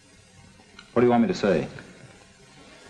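A man speaks briefly and firmly.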